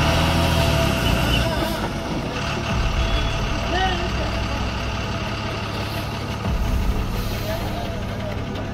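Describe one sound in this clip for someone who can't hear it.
A heavy truck engine rumbles and strains.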